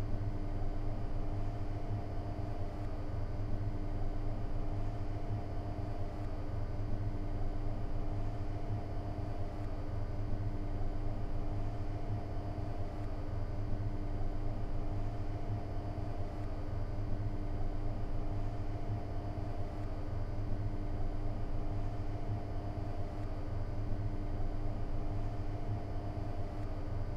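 A train's electric motors hum steadily from inside the cab.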